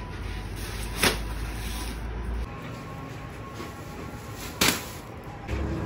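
A heavy sack thuds onto a concrete ledge.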